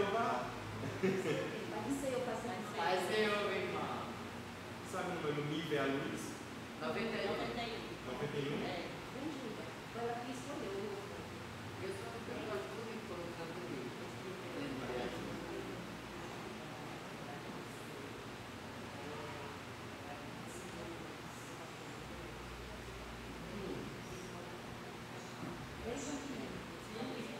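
An elderly woman speaks softly.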